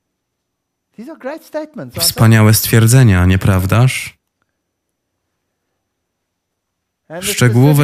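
An elderly man speaks with animation through a headset microphone.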